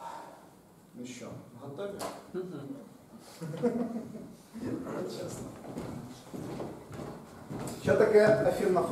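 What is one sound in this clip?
A man speaks calmly in a large, echoing room.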